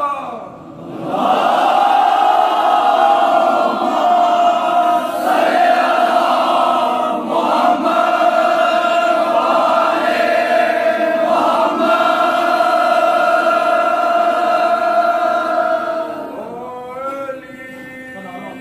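A crowd of men chants loudly together.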